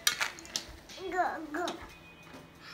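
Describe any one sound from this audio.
A toddler babbles in a high voice close by.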